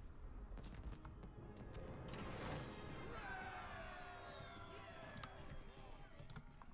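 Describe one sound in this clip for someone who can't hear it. A game plays a bright, sparkling victory fanfare.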